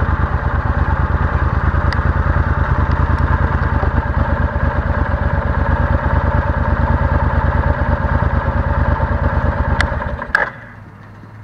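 A motorcycle engine idles with a steady rumble close by, then cuts off.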